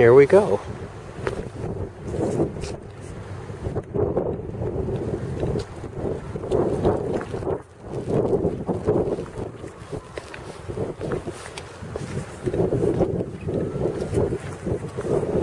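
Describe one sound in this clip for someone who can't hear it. Footsteps crunch and rustle through grass and dry leaves.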